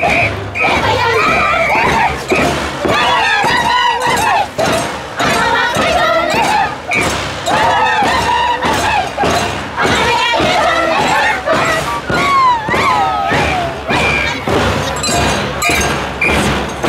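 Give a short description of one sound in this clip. Several women sing together in high voices, outdoors.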